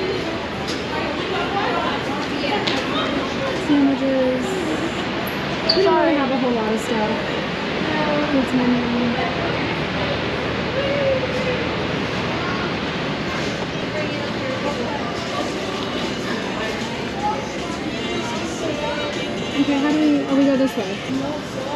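Voices murmur in the background of a large echoing hall.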